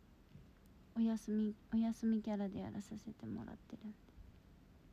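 A young woman speaks softly and close to a phone microphone.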